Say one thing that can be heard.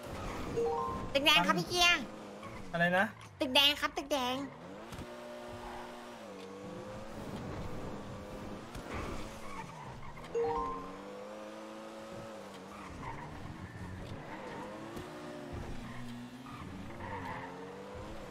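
Tyres screech as a car takes sharp turns.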